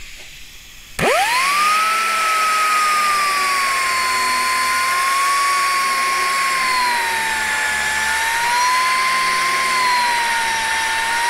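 An angle grinder spins up to a high, steady whine.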